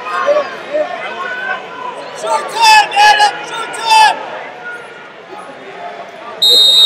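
Spectators shout and call out in a large echoing hall.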